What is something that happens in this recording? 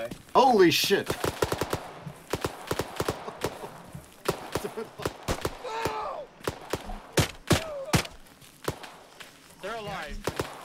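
Rifles fire in sharp bursts close by.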